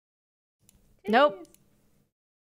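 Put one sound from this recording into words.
A young woman exclaims loudly in a high voice.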